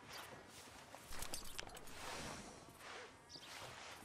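A rider climbs into a creaking leather saddle.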